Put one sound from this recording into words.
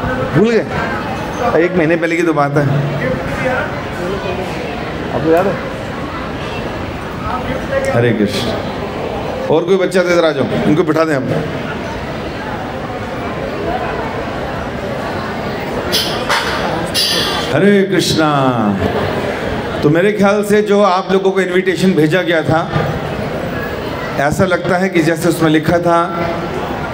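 A middle-aged man sings with feeling into a microphone, heard through loudspeakers.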